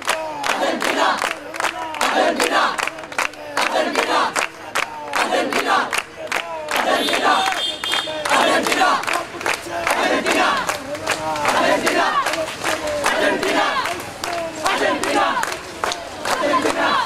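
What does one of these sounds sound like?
A crowd of young men chants loudly in rhythm outdoors.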